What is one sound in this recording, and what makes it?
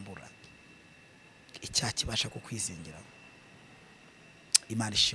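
A man speaks calmly and close into a handheld microphone.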